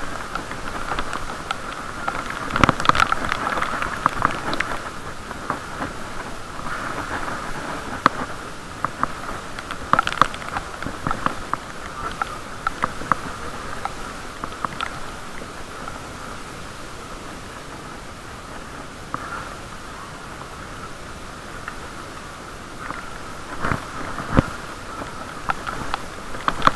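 Wind buffets the microphone while cycling outdoors.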